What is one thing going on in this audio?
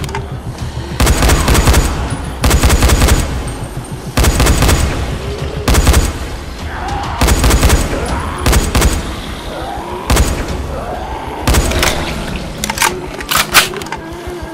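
An automatic rifle fires in loud, rapid bursts.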